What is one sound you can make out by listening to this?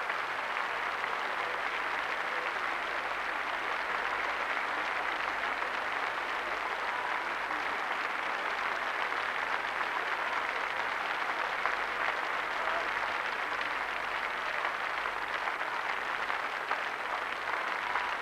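An audience applauds steadily in a large hall.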